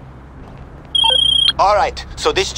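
A phone rings briefly.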